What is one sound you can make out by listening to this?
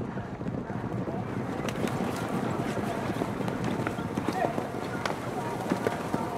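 Horses gallop, their hooves thudding on turf.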